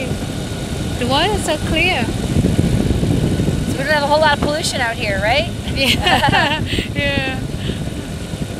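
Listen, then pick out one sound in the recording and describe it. A man speaks loudly over the engine noise.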